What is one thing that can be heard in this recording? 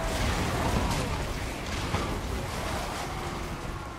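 Fire roars.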